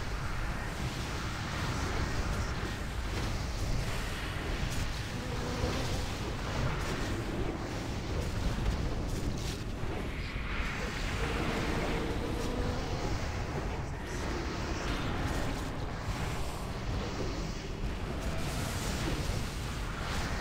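Magic spells crackle and whoosh amid the clash of a fantasy battle.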